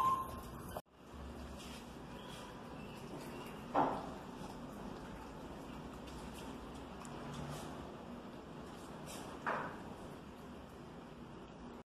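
A small dog crunches and chews food from a bowl.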